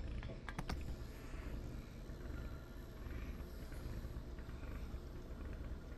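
Liquid pours from a can into a cup.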